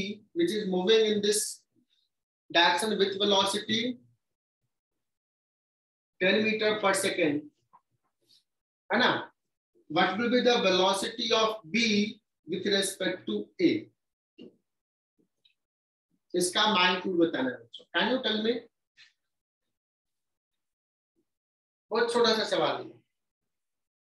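A young man speaks calmly and clearly, as if explaining, close to the microphone.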